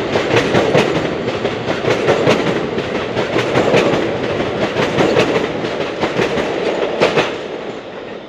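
A subway train rushes past close by, its wheels clattering rhythmically over the rail joints.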